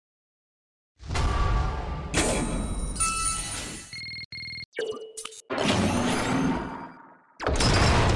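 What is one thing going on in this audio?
Electronic game sound effects play in loud bursts.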